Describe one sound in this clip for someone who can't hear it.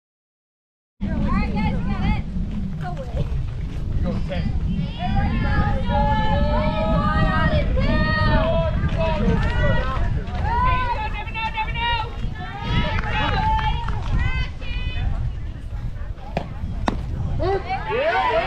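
Young women chant and cheer loudly outdoors.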